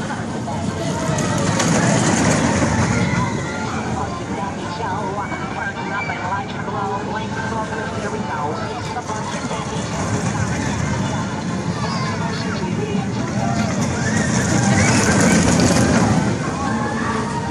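A roller coaster train roars and rattles past on its track.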